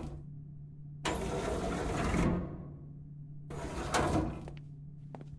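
Elevator doors slide shut and open again with a rumbling whoosh.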